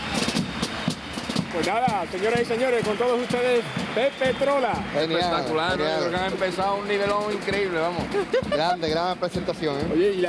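A drum beats a rhythm.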